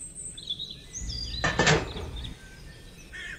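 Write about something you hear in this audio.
A small plastic toy part is set down with a knock and a rustle.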